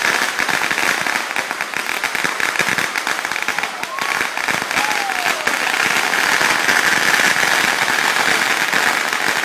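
Burning fireworks hiss steadily.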